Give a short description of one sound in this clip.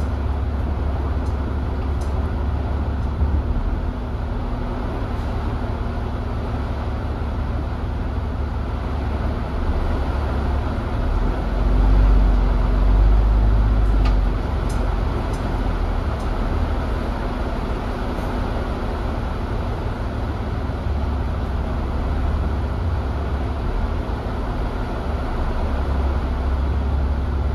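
Heavy rain patters steadily on a bus.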